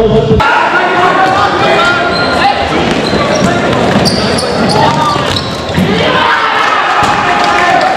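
Sneakers squeak on a hall floor.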